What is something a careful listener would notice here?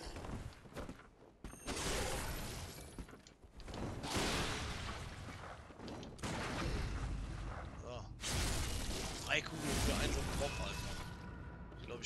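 Blades slash and strike in a fight.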